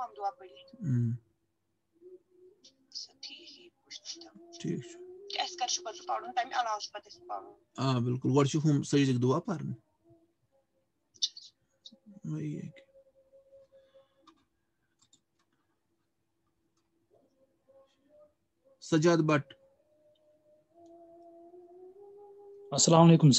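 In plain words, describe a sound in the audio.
A middle-aged man speaks calmly over an online call.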